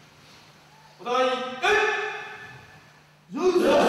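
A man shouts a command loudly in an echoing hall.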